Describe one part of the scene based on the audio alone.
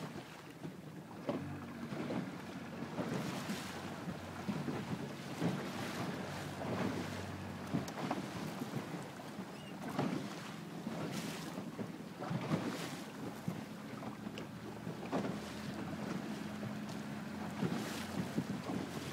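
Waves splash and slap against a boat's hull.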